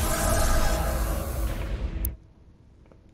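Electricity crackles and buzzes loudly.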